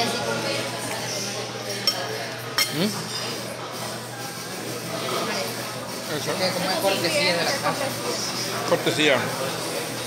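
Cutlery scrapes on a plate.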